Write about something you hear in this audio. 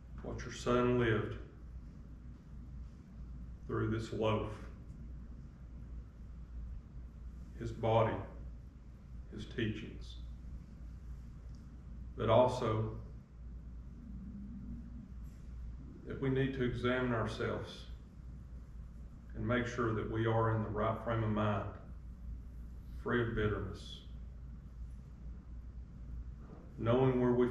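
An elderly man prays aloud slowly into a microphone, with long pauses, in a room with a slight echo.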